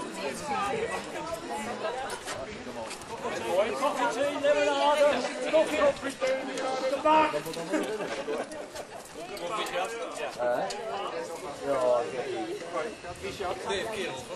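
An elderly man talks with people close by.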